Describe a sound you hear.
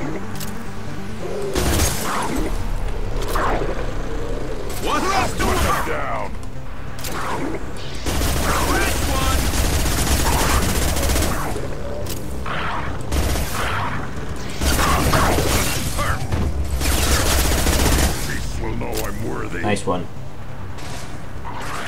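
Guns fire in rapid bursts with loud bangs.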